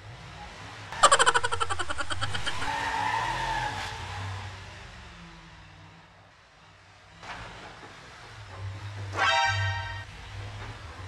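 Tyres rattle quickly over ridged bumps.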